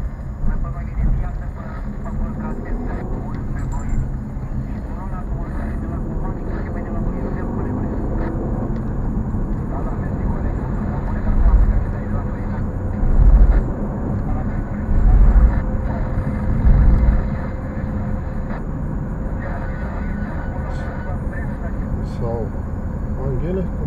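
Tyres rumble low on asphalt.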